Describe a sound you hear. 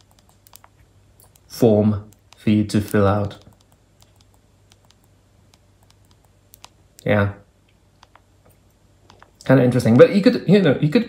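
Phone keys click softly as buttons are pressed.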